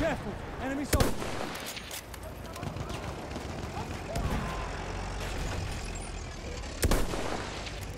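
A rifle fires a loud, sharp shot close by.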